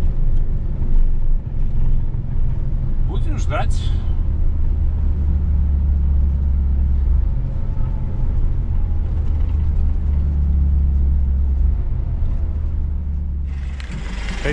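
A truck engine rumbles low and steady from inside the cab.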